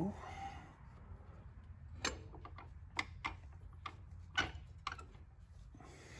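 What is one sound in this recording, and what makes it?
A hand taps and pats a metal engine casing.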